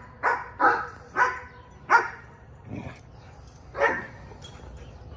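A dog barks sharply several times close by.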